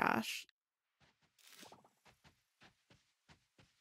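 A game character's footsteps patter softly on grass.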